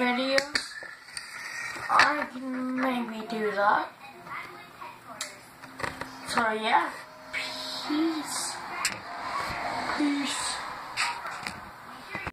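A young boy talks casually and close up.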